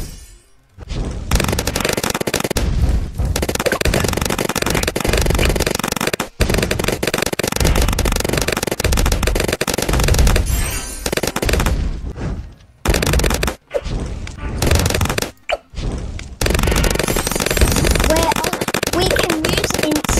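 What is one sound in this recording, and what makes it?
Game balloons pop in quick succession.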